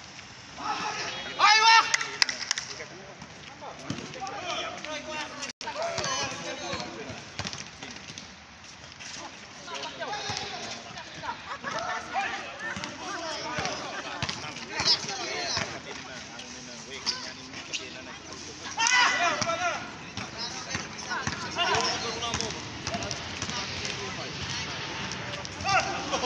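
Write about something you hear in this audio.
Children shout and call out outdoors.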